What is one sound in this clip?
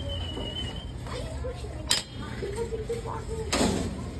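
A metal flap on a vending machine clanks shut.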